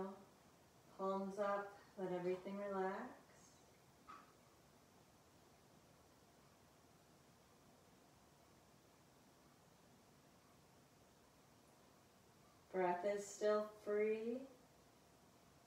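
A woman speaks calmly and softly, close by, with long pauses.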